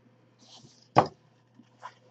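Pliers snip through plastic.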